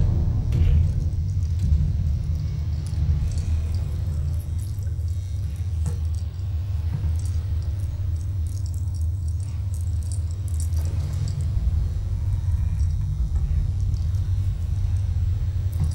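An elevator hums low and steadily as it moves.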